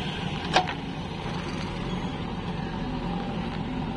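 Clods of earth knock and thud as a digger bucket breaks ground.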